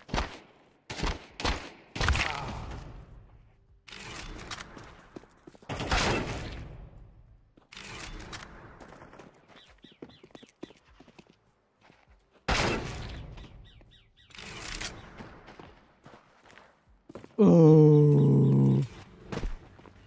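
Gunshots crack in short bursts, each followed by a fading echo.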